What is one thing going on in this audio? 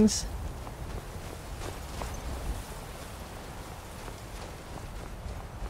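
Footsteps crunch softly through snow.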